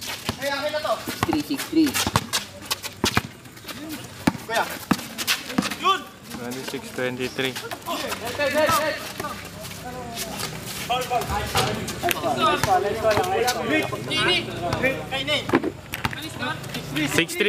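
A basketball bounces on an outdoor concrete court.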